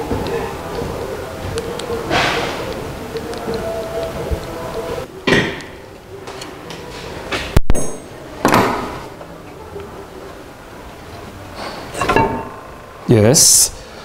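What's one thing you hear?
Metal parts clank and knock on an engine.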